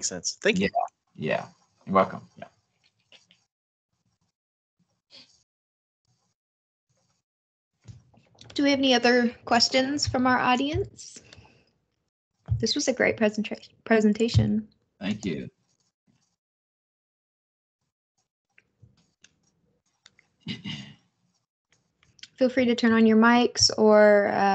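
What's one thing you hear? A woman speaks calmly through an online call, in short bursts with pauses.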